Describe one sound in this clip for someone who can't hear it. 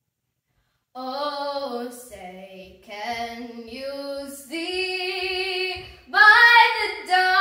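A young girl sings clearly, close by, in a bright voice.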